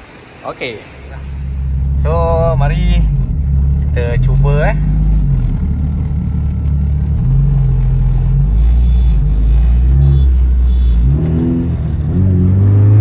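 A car engine roars and revs loudly, heard from inside the car.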